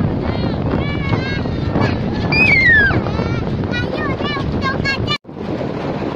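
A young girl laughs and squeals excitedly close by.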